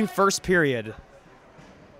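A young man shouts loudly in a large echoing hall.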